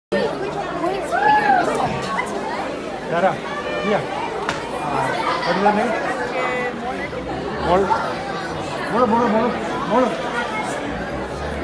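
A crowd of guests chatters and cheers.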